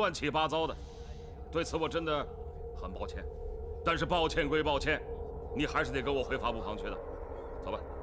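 A man speaks firmly nearby.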